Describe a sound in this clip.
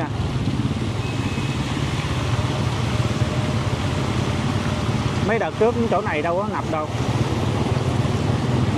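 A motorbike engine hums steadily nearby.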